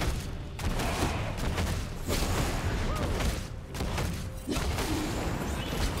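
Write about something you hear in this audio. Fantasy battle sounds crackle and clash.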